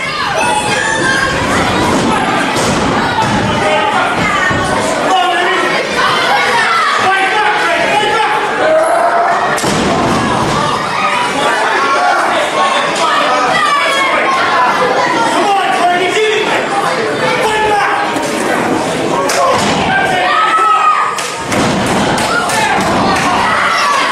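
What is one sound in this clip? A crowd of men and women chatters and shouts in a large echoing hall.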